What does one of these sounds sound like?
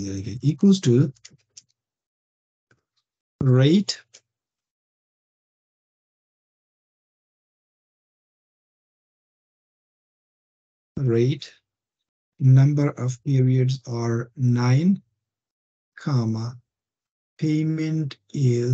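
A man speaks calmly through an online call, with long pauses.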